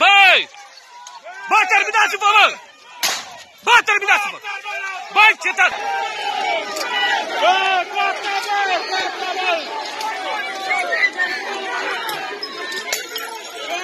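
Men shout and yell angrily nearby.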